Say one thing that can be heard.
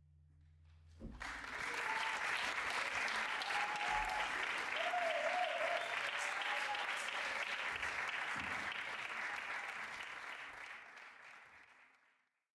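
A large audience applauds loudly and then fades away.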